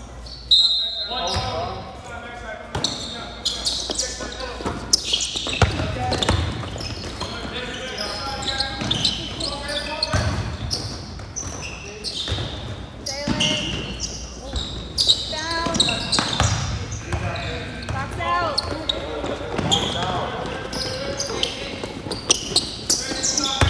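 Young people shout and call out across the hall.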